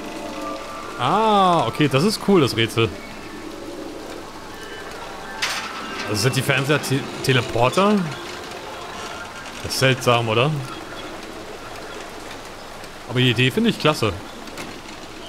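A small metal cable car squeals and creaks as it rolls along a wire.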